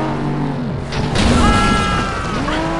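Metal crunches as cars collide.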